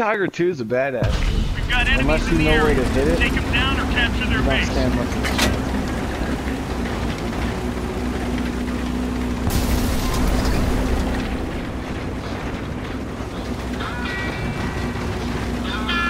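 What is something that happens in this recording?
A tank engine rumbles and clanks steadily.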